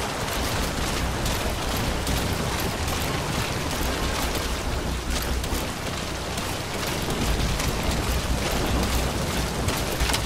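Clothing and gear rustle and scrape as someone crawls along the ground.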